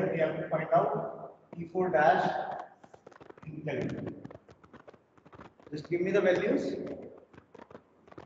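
A man speaks clearly into a microphone, explaining.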